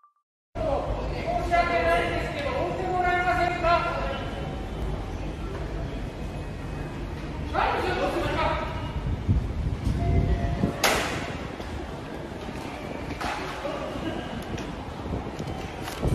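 A man shouts angrily at a distance in an echoing hall.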